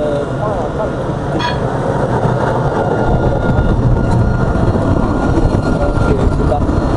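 A tram rumbles past close by.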